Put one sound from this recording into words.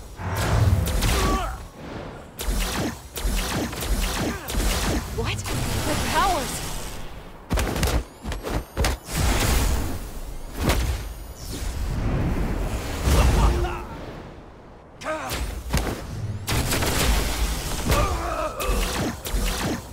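Punches and blows land with heavy, repeated impacts.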